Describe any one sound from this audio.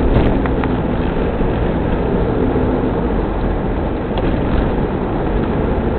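Tyres hiss and rumble on a wet, slushy road.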